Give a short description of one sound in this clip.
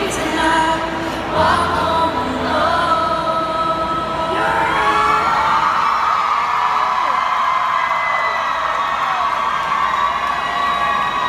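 A young woman sings through a microphone.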